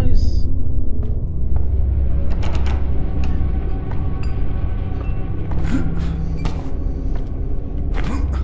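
Footsteps creak across a wooden floor.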